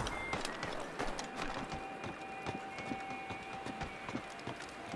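A wooden ladder creaks and knocks as someone climbs it.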